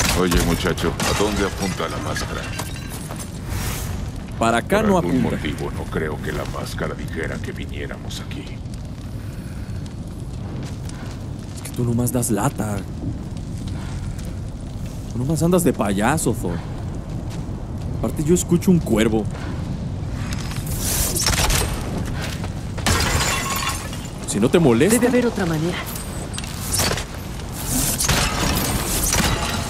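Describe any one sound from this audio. A young man talks with animation, close to a microphone.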